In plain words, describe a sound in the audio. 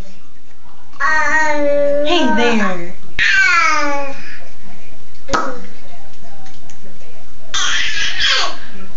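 A baby giggles and squeals with delight close by.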